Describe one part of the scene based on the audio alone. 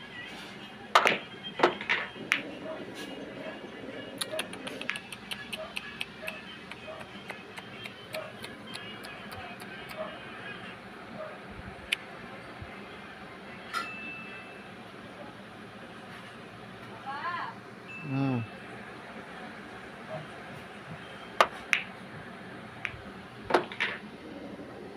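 Pool balls knock sharply against each other.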